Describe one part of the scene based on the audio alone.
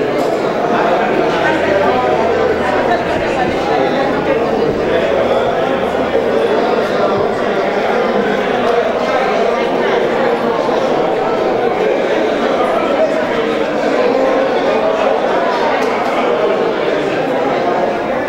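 A crowd of men and women sing together.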